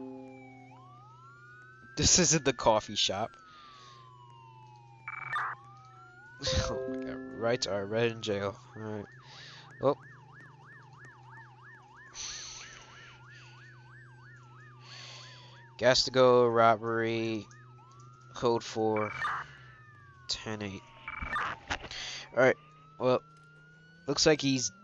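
A police siren wails, rising and falling, with a fast yelp at times.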